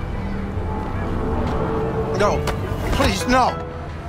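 A car door bangs shut.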